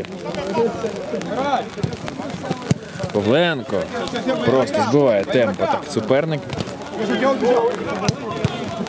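Several men shout and call to each other outdoors.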